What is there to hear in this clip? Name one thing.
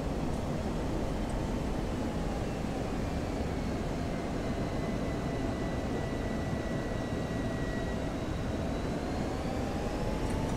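A second jet whines nearby as it draws close.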